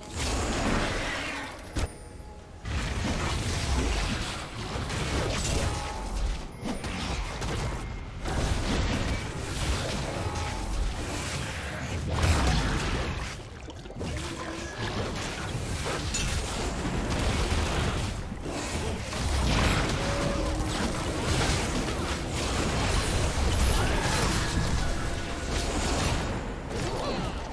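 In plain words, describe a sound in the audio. Game attack hits thud and crack repeatedly.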